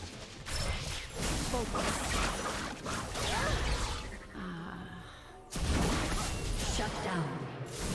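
Fantasy battle sound effects whoosh, zap and crackle.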